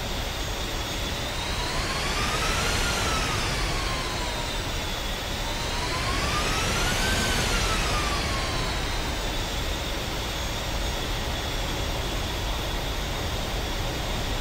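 A jet engine whines steadily, its pitch rising and falling as it swells.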